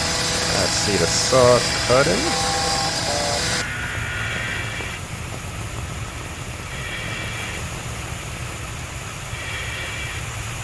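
Water sprays and hisses from a fire hose.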